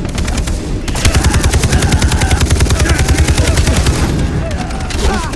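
A rifle fires in a rapid burst, close by.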